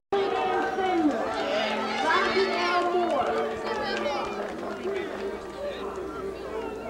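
A crowd of young people chatter and call out.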